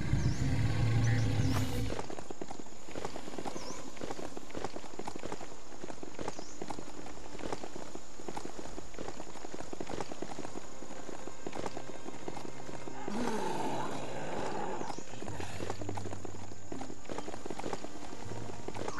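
A large animal's paws thud quickly on dirt as it runs.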